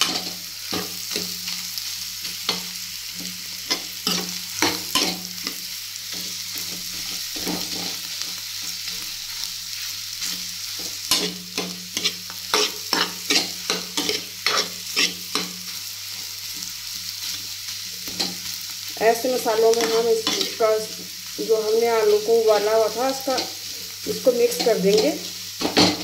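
A metal ladle scrapes and clinks against a frying pan.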